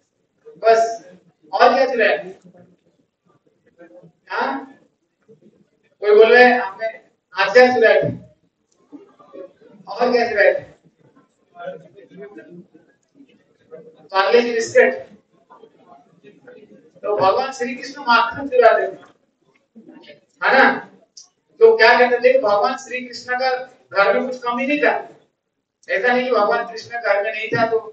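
A man speaks over a loudspeaker in a large echoing hall, in short phrases.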